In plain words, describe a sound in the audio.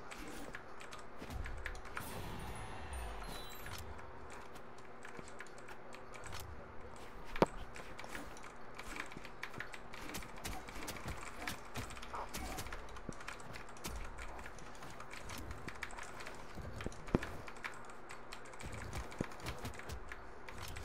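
Game music plays steadily.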